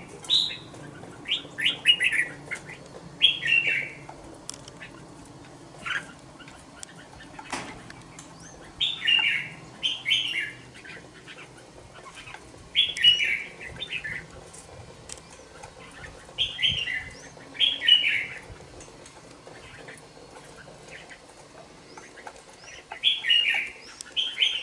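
A caged songbird sings short, bright chirping phrases again and again.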